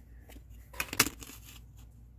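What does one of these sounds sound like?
A plastic ruler clacks down on a mat.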